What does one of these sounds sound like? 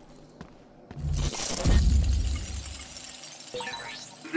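A deep whooshing burst swells and fades.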